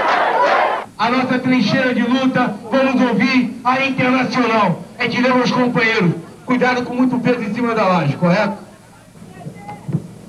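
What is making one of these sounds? A man sings through a microphone and loudspeakers.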